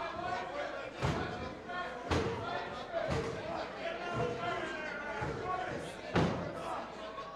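Heavy thuds land on a ring mat at regular intervals.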